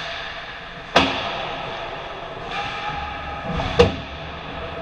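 A puck strikes the boards or goal with a sharp crack.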